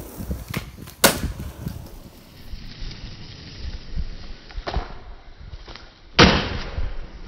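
A skateboard lands with a sharp clack.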